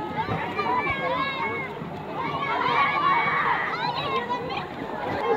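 Water splashes as children move in a pool.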